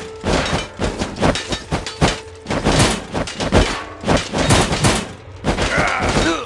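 Swords and clubs clash repeatedly in a battle.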